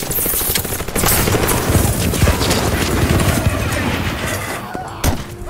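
A flamethrower roars, spraying fire.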